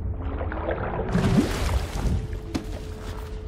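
Water splashes loudly as a swimmer breaks the surface.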